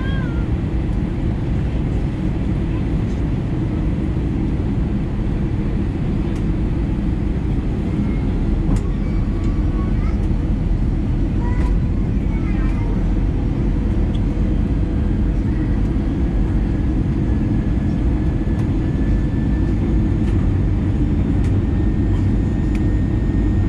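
A jet engine roars steadily in flight, heard from inside the cabin.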